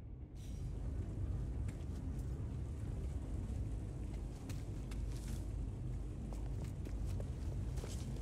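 A low, steady engine hum drones throughout.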